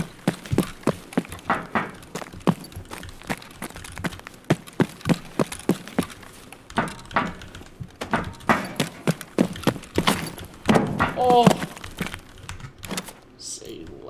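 Footsteps thud rhythmically on a hard metal floor.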